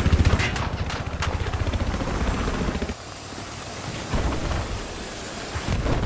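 A welding torch hisses and crackles.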